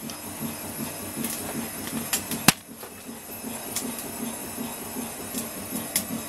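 A washing machine churns with a steady, rhythmic low hum.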